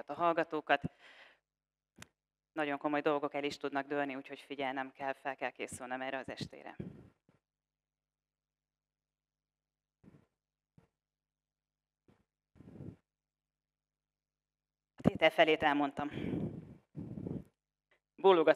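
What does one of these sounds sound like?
A woman speaks clearly through a headset microphone, with long pauses.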